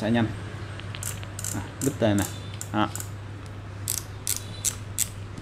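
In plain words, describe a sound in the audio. A fishing reel's parts click and rattle.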